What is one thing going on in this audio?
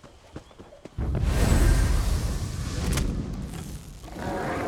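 A fire spell bursts with a loud whoosh.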